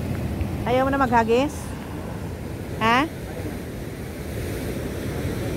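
Waves wash against rocks in the background.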